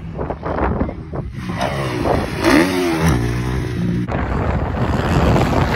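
A dirt bike engine revs and roars.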